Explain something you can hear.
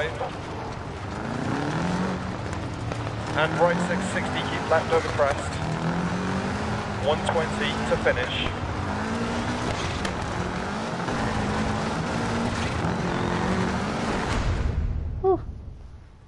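Tyres crunch and skid over loose gravel.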